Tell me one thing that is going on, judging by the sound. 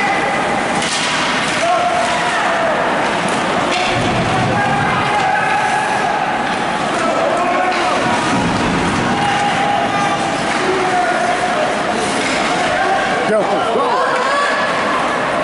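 Skates scrape and swish across ice.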